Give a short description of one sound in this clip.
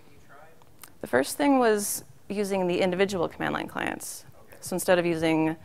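A woman speaks calmly into a microphone in a large hall.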